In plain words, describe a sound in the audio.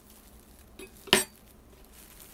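A knife clatters onto a wooden board.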